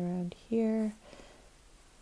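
A paintbrush swishes softly on paper.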